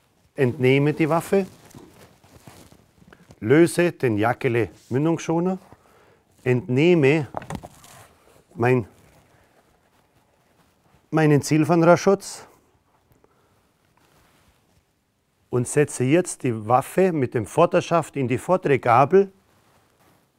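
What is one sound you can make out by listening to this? A middle-aged man speaks calmly and clearly close by, in short phrases with pauses.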